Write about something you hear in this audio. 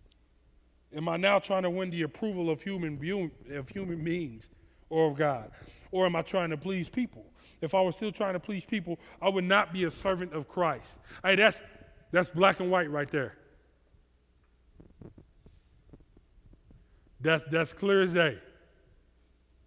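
A man speaks with animation into a headset microphone.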